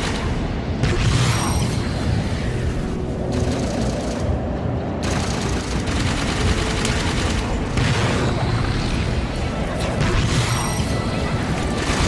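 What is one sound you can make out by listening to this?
Engine whooshes swell as the craft speeds past machinery.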